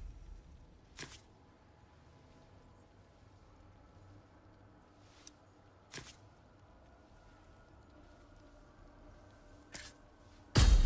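Short soft clicks sound from a game menu.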